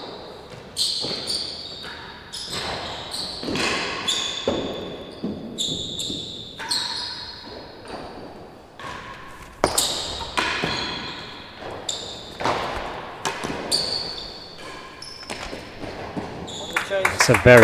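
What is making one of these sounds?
A ball is struck with a racket and bounces off walls, echoing loudly in a large hall.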